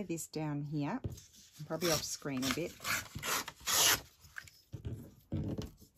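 Paper rips along a metal ruler.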